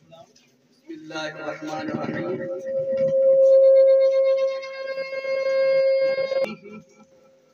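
A microphone gives a loud, steady feedback whine.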